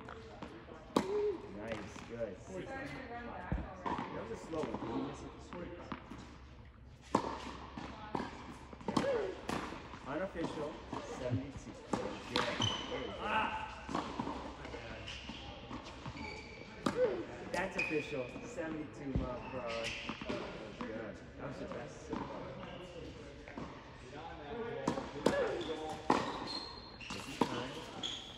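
A tennis racket strikes a ball with sharp pops in a large echoing hall.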